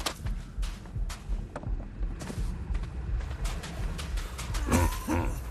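Footsteps thud and rustle quickly through grass.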